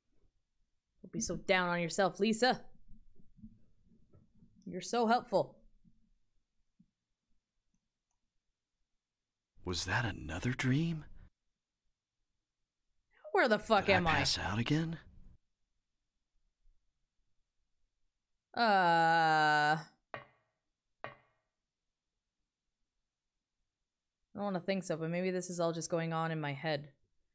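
A young woman talks calmly close to a microphone.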